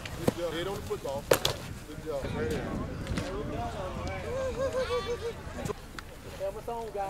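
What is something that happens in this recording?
Young men talk casually close by, outdoors.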